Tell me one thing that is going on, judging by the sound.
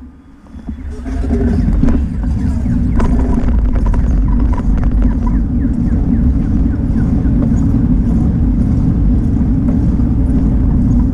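Tyres rumble steadily over a paved street.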